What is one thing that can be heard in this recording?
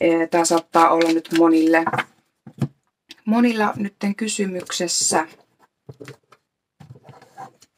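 Playing cards shuffle and slide against each other.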